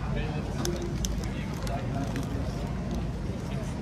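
A man bites into a crunchy sandwich with a loud crunch.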